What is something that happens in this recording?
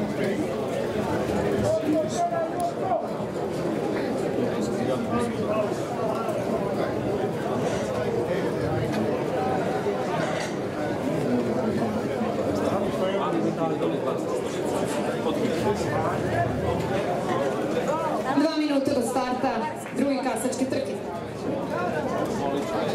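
A crowd chatters outdoors at a distance.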